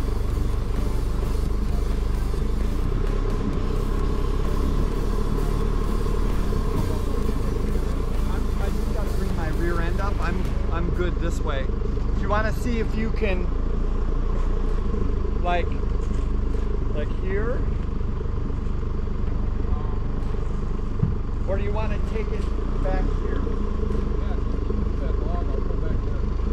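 A vehicle engine idles with a steady low rumble.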